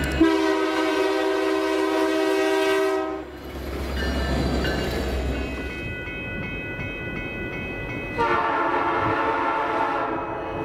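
A train horn blares loudly.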